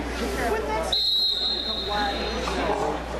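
A referee blows a whistle sharply.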